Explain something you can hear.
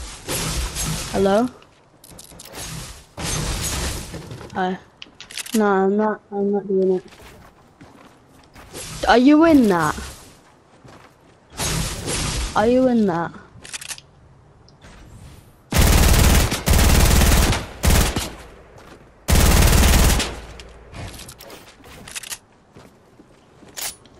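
Wooden building pieces clatter into place rapidly in a video game.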